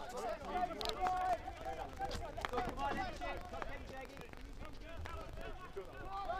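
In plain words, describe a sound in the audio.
Several men shout and call out across an open field.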